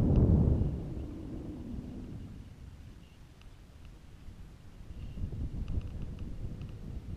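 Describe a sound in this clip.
Wind buffets the microphone in low, uneven gusts.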